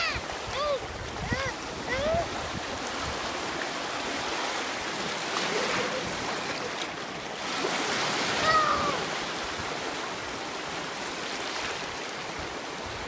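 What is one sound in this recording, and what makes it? Small waves break and wash through shallow sea water.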